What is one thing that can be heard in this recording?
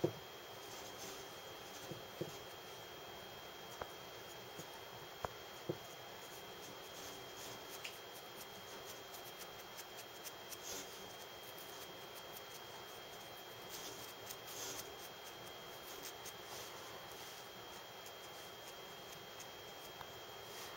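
A cotton swab rubs softly against a plaster model.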